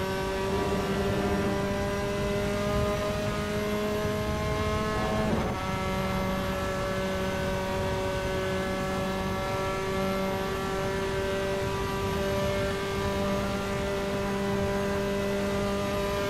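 A racing car engine roars steadily at high revs, its pitch slowly climbing.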